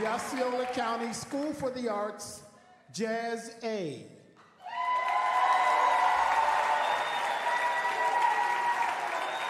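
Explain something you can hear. A jazz band plays live in a large hall.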